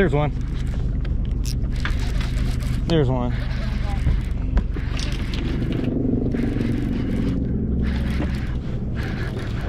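A fishing reel whirs as its line is cranked in.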